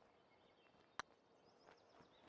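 A putter taps a golf ball once.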